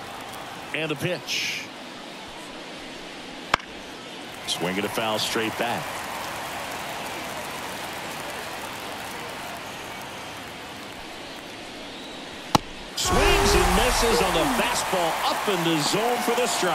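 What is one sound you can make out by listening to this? A large stadium crowd murmurs and cheers.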